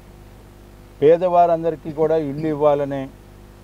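A middle-aged man speaks firmly into a close microphone outdoors.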